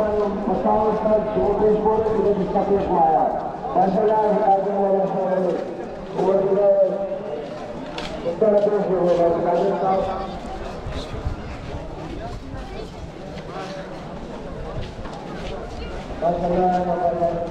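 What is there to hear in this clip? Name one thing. A man chants a slow, mournful song in a loud, steady voice.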